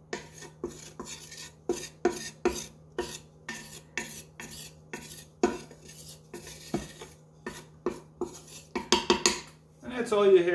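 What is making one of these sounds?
A wooden spatula scrapes and taps against the bottom of a metal pot.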